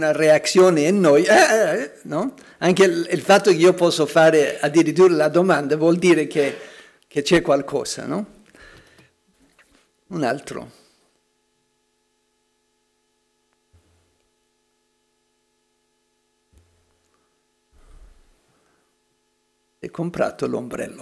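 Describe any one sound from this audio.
An elderly man speaks calmly into a microphone, pausing now and then.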